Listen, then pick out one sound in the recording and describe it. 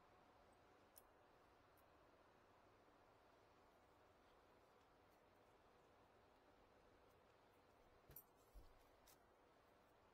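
Metal parts clink and click as they are handled.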